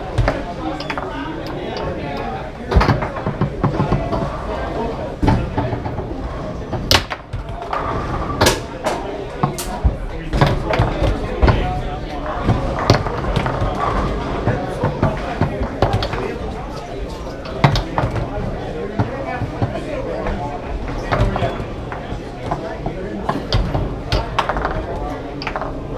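Foosball rods rattle and clack as players spin and slide them.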